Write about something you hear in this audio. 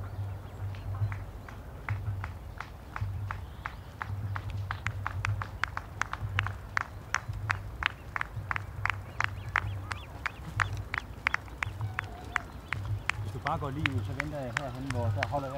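Running footsteps slap on pavement, growing louder as a runner approaches.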